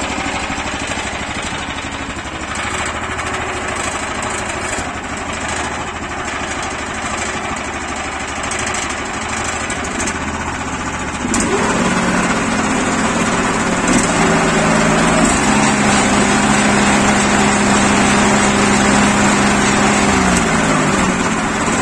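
A small petrol engine runs steadily nearby.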